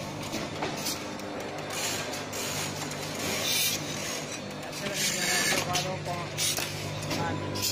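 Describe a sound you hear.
A machine hums and clatters steadily nearby.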